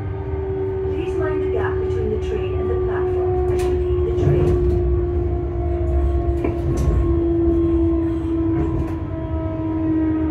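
Train wheels rattle and clatter on the rails.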